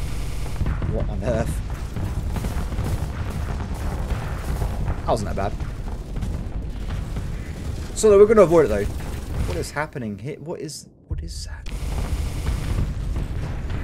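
Missiles whoosh as a swarm of them is launched.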